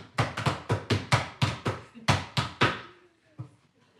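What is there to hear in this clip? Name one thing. Wooden paddles beat wet laundry in quick, loud thuds that echo in a hall.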